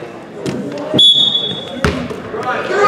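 A referee's whistle blows a short sharp blast.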